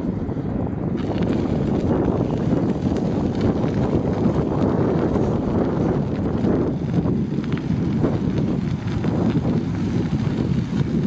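Bicycle tyres crunch over a gravel path.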